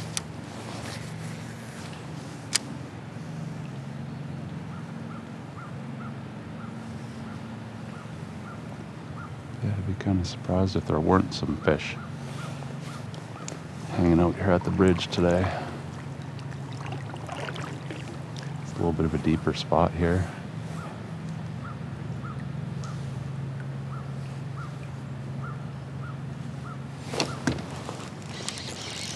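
Water laps gently against a kayak hull.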